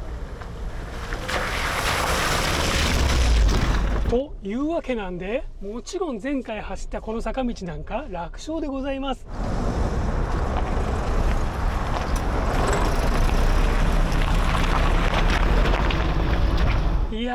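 A car engine hums as it passes.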